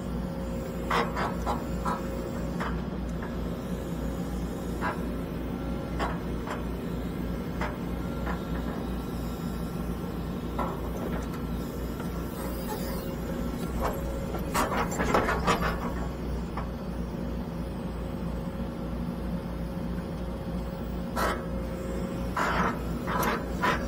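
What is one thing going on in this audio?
A digger bucket scrapes and thuds into dirt.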